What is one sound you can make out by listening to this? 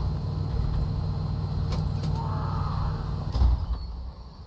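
A low machine hum drones steadily, then cuts off.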